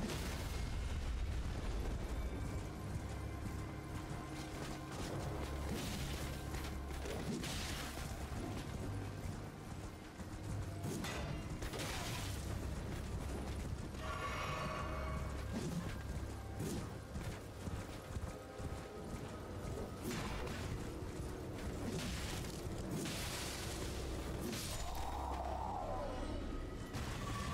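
Swords clash and slash in a game fight.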